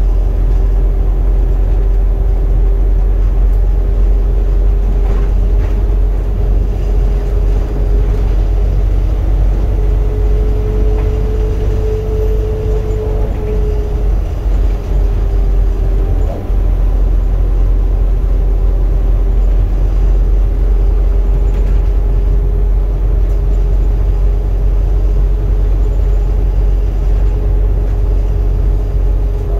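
A bus engine drones, heard from inside the bus as it drives along.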